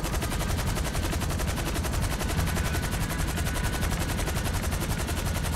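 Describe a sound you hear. A helicopter's rotor chops rapidly and steadily.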